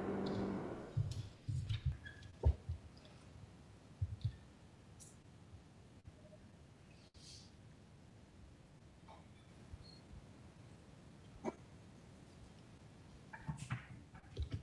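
Objects knock and bump softly on a table nearby.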